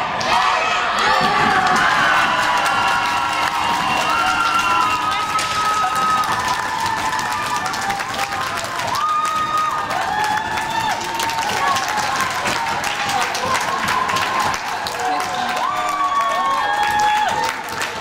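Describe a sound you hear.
A crowd of spectators cheers and shouts loudly in a large echoing arena.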